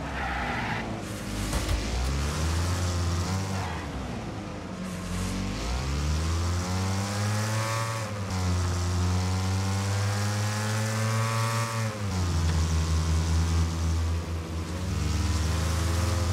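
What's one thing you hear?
A car engine revs hard, rising and falling in pitch as it shifts gears.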